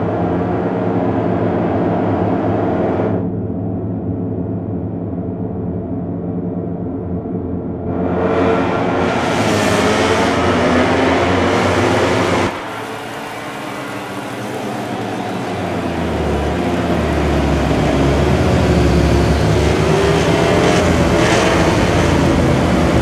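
Motorcycle engines roar and whine at high revs.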